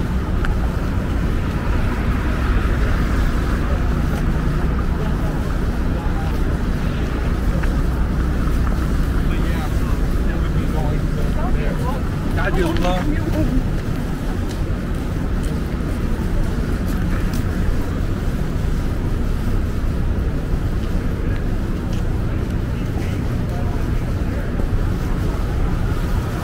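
Footsteps crunch on snowy pavement.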